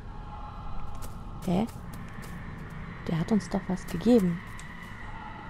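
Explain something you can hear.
Footsteps crunch on a gravelly floor.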